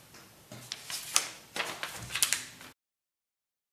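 Paper rustles as a sheet is lifted and turned over.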